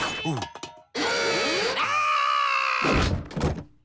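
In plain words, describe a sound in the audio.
A cartoon character yells in alarm.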